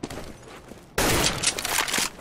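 A sniper rifle fires a single loud, sharp shot.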